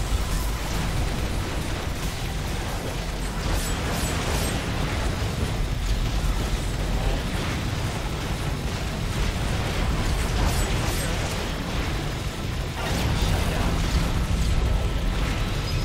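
Game explosions boom repeatedly.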